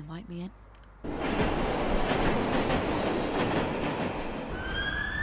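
A subway train rushes past loudly.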